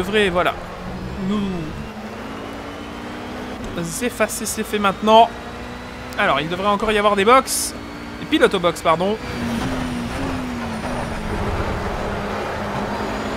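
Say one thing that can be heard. A racing car engine roars, revving up and dropping sharply through quick gear changes.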